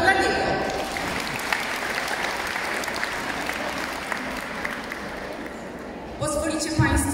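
A crowd applauds in a large echoing hall.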